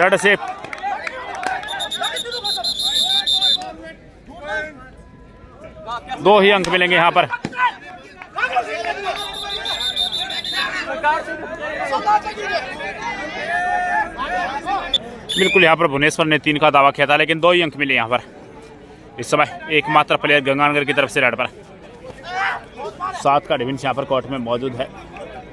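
A crowd of spectators chatters and cheers in the background.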